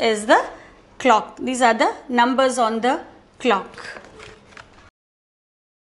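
A young woman speaks brightly and clearly into a close microphone.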